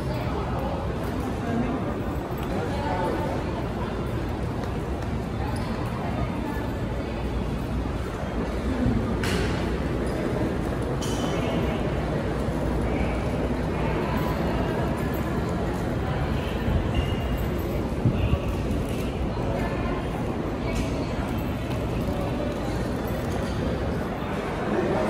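Crowd chatter murmurs through a large echoing hall.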